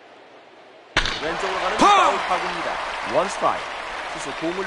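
A stadium crowd cheers and roars.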